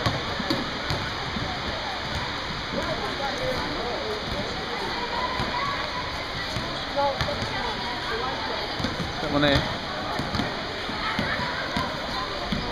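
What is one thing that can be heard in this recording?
Children's voices chatter and call out in a large echoing hall.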